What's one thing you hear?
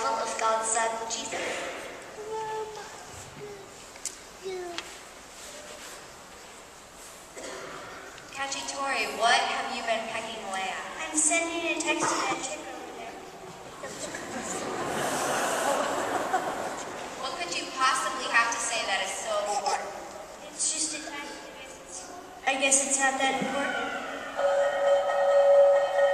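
Young children speak and sing into a microphone in a large echoing hall.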